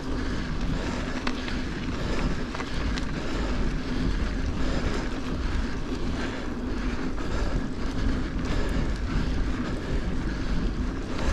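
Bicycle tyres roll and crunch over a rough dirt track.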